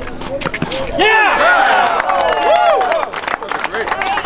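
Men and women shout and cheer outdoors after a point.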